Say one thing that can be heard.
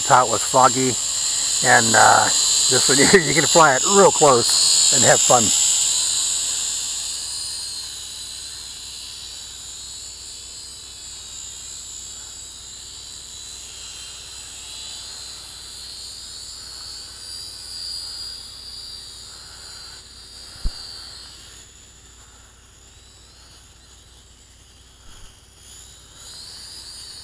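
A drone's propellers whine loudly close by, then fade as the drone flies away.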